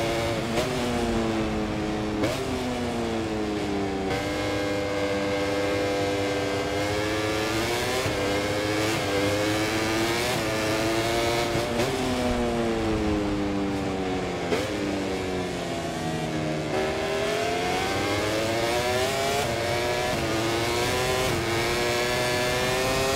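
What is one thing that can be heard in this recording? A motorcycle engine revs high, rising and dropping in pitch as it shifts gears.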